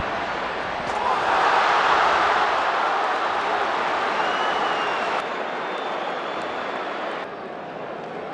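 A stadium crowd erupts in a loud cheer.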